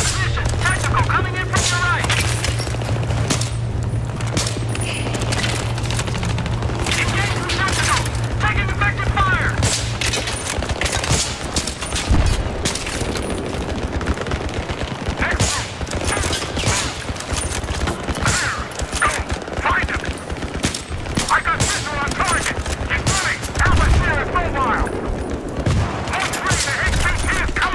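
Rifle shots crack again and again.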